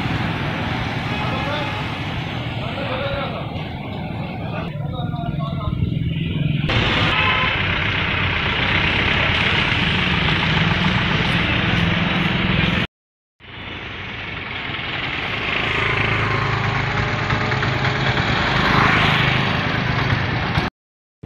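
Motorcycle engines buzz as motorcycles ride past close by.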